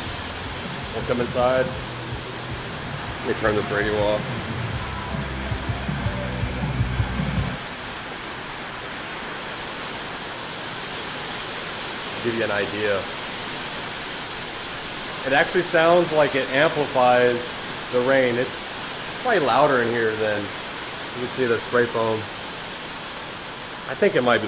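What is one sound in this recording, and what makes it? A man talks close by, calmly and with pauses.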